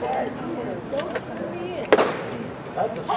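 A baseball smacks into a catcher's mitt.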